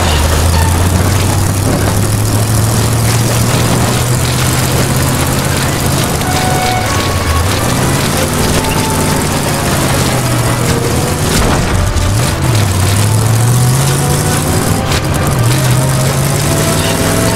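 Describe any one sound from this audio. A car engine drones steadily and rises and falls in pitch as the car drives.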